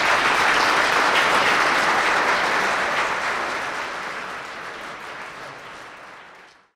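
A crowd applauds loudly in a large room, then the applause slowly fades.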